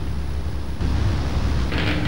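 An electric fan whirs steadily.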